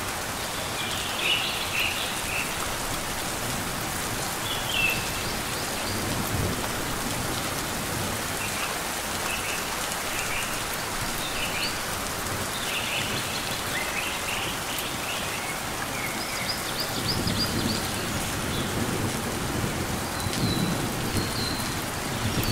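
A small bird chirps in short high bursts.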